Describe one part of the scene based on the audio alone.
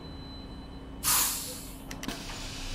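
Bus air brakes hiss sharply as the bus stops.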